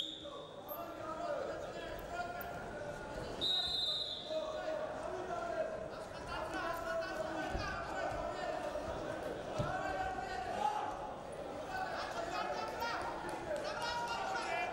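Spectators and coaches shout and call out in a large echoing hall.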